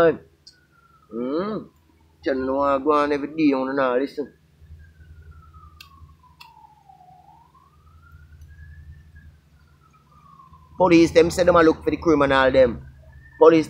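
A man speaks calmly and close by, in pauses.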